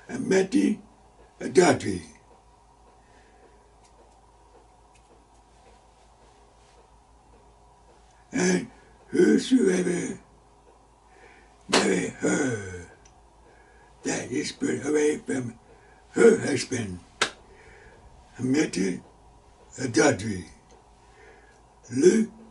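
An elderly man speaks with emphasis close to a microphone, with long pauses.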